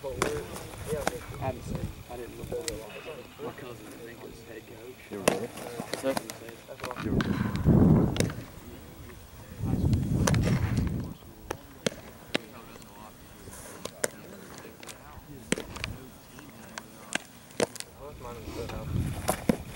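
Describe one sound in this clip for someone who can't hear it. A baseball smacks into a leather mitt.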